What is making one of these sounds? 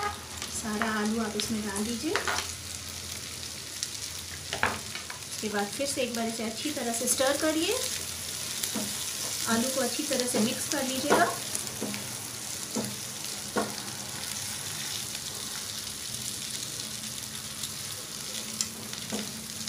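Food sizzles steadily in a hot pan.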